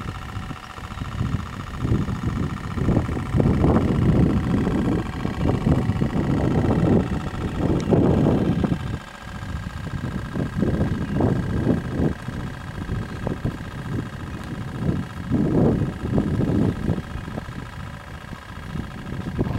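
A small electric motor whines steadily.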